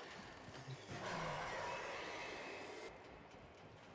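A heavy door slides open with a rushing hiss.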